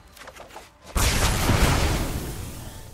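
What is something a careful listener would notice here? A game spell effect bursts with a deep whooshing boom.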